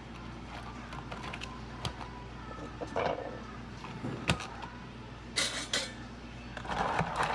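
Plastic cups knock and scrape on a counter.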